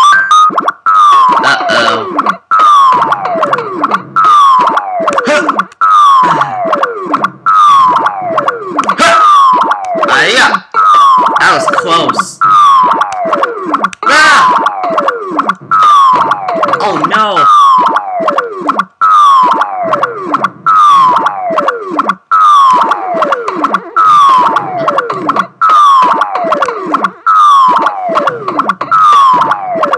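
Retro arcade game music plays with a repeating falling electronic tone.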